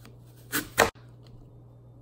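Apple slices tap against a stone countertop.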